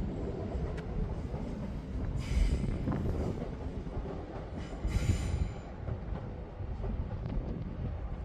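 A train rumbles past in the distance.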